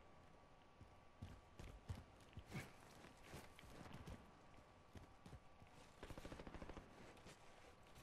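Footsteps thud quickly over hard ground.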